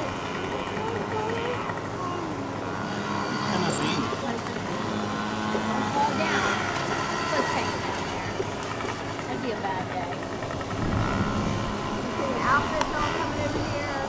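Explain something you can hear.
A small dirt bike engine buzzes and revs as it rides along a track.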